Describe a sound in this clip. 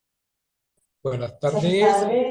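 A young woman speaks over an online call.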